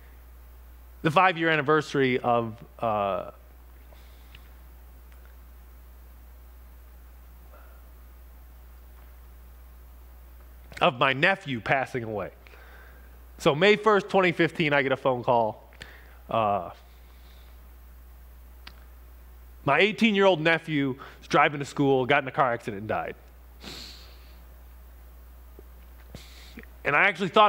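A man talks calmly in bursts into a microphone, with long pauses.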